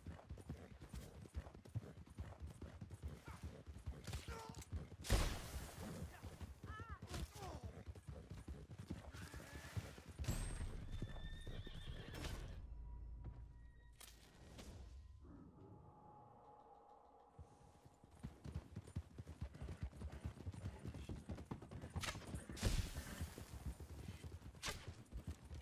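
A horse gallops on a dirt trail.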